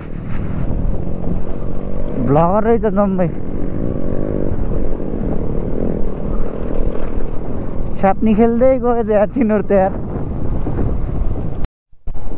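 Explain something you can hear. Tyres crunch and rumble over loose gravel.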